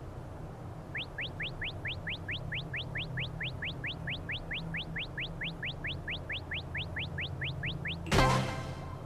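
Quick rising beeps repeat rapidly while a cartoon figure flies.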